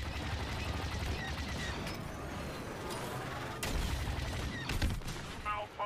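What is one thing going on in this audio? Spaceship engines roar and whine steadily.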